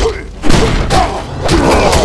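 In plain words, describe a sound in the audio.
An explosive blast bursts.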